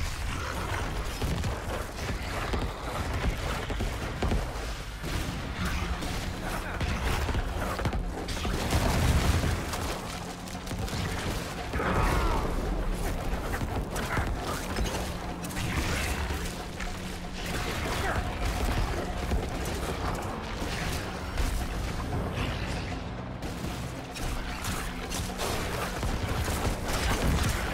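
Spells and blows crash and thud in a game throughout.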